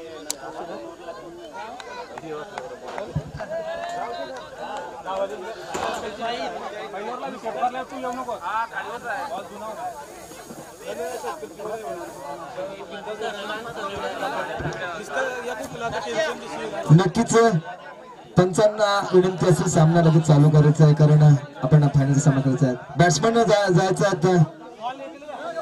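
Several young men talk among themselves at a distance outdoors.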